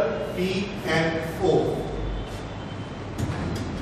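A cloth duster rubs across a blackboard.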